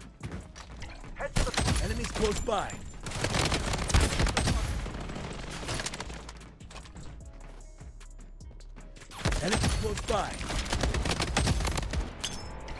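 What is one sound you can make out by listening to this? A rifle fires sharp, loud shots in bursts.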